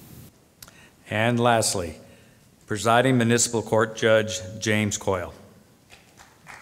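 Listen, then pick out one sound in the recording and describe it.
A man speaks calmly through a loudspeaker in a large hall.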